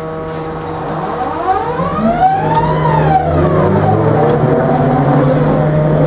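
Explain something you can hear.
A trolleybus passes close by with a motor whine that rises and then falls.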